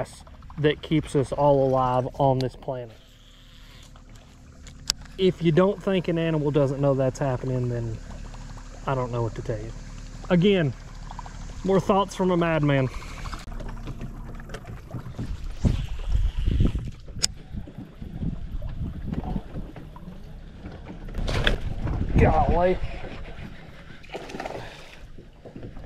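A fish splashes at the water's surface.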